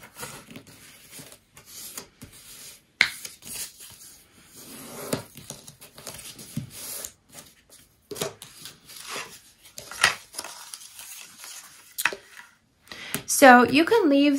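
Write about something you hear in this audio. Paper rustles and crinkles as it is folded and creased by hand.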